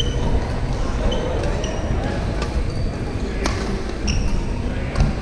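Shoes squeak sharply on a wooden court floor.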